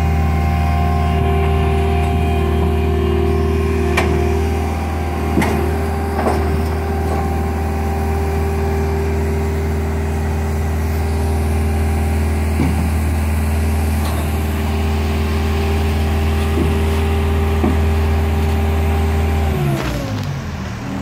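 A diesel engine rumbles steadily close by, then winds down and stops.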